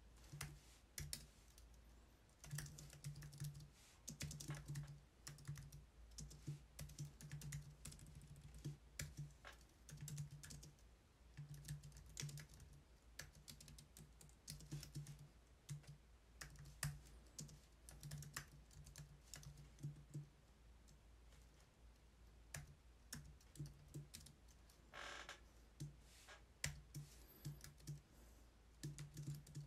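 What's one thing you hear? Keyboard keys click in quick, uneven bursts.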